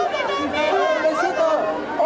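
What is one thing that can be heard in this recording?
A man shouts with animation nearby.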